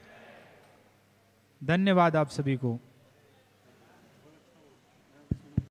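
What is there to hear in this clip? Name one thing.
A crowd murmurs softly in a large echoing hall.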